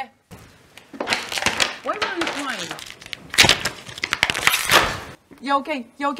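Paper rustles and tears.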